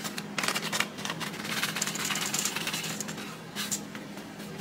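Seasoning rattles out of a shaker over a pot.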